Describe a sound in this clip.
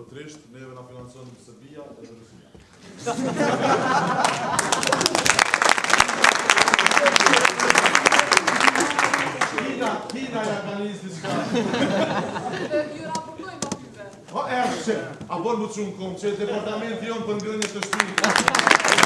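A man speaks into a microphone to an audience in a large hall.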